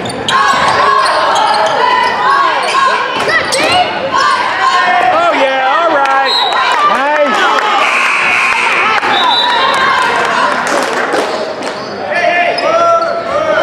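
Sneakers squeak sharply on a hardwood floor in a large echoing gym.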